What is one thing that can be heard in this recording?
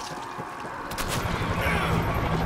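A blunt weapon swings and thuds heavily.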